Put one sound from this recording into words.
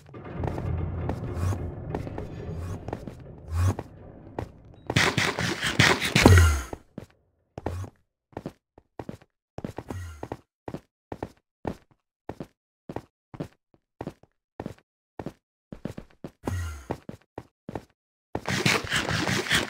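Footsteps tap steadily on hard stone.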